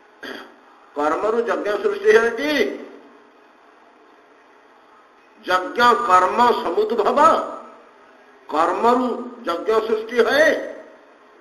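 An elderly man speaks in short phrases, close to a microphone.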